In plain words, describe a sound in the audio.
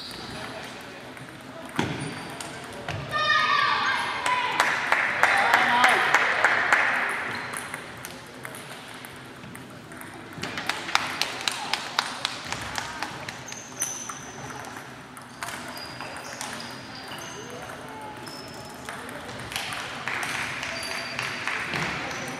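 Table tennis balls click rapidly against paddles and tables in a large echoing hall.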